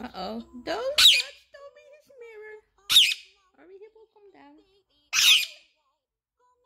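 A parrot squawks loudly close by.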